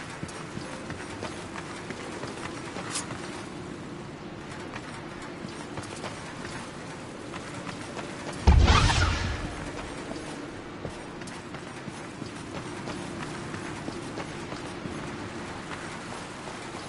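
Heavy footsteps clank on stone.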